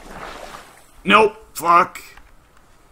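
A man calls out briefly nearby.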